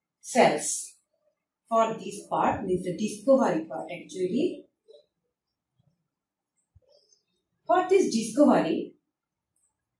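A young woman speaks calmly and clearly nearby, in short phrases.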